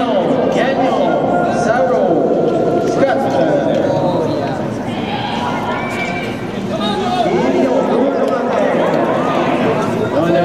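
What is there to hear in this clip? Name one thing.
Speed skates scrape and carve across the ice.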